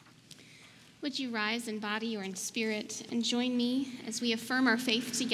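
A young woman speaks clearly into a microphone, heard through a loudspeaker in a large echoing hall.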